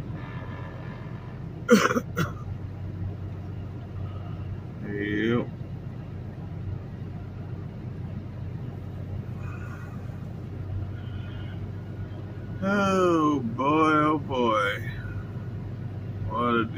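A truck engine rumbles steadily while driving on a highway.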